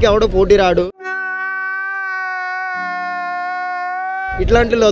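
A man lets out a long, loud, drawn-out scream.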